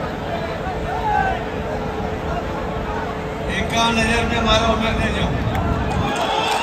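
A large crowd chatters and murmurs outdoors.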